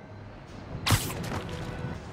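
A heavy thud lands on a rooftop.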